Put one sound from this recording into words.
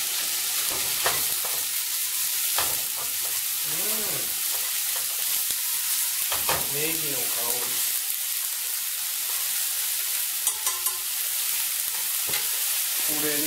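Chopsticks clink against a frying pan.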